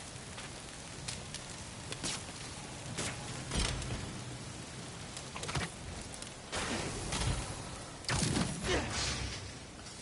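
Debris crashes and clatters.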